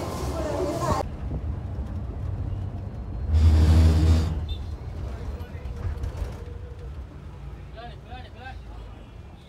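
A bus engine rumbles while the bus drives.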